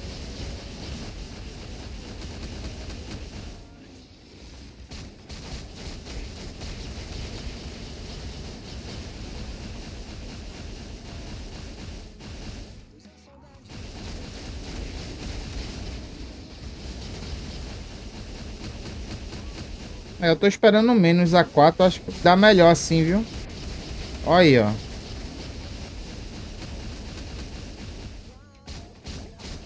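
Video game battle effects whoosh and crash steadily.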